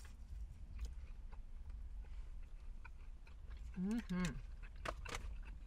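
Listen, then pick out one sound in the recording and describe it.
A young man and a young woman chew fries close to the microphone.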